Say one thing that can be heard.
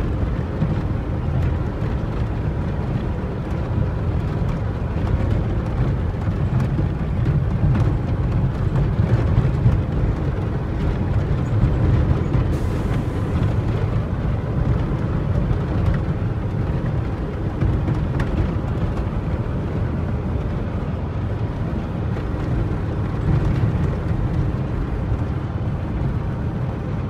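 A vehicle engine rumbles steadily inside the cab.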